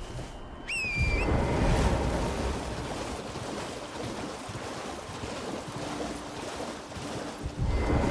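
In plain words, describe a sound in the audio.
A horse gallops splashing through shallow water.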